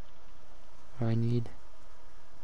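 A young man briefly makes a low voiced sound close to a microphone.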